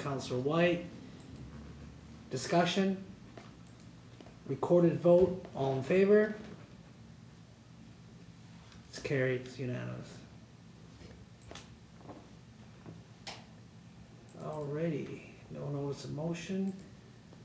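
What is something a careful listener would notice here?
A man speaks calmly into a microphone, pausing between phrases.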